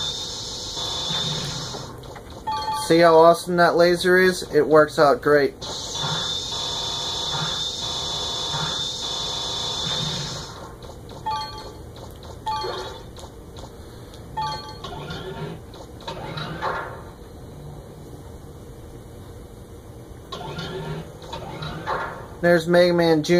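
Video game music and sound effects play from a television's speakers.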